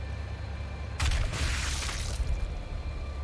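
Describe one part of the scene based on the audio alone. A whooshing burst of energy rushes briefly.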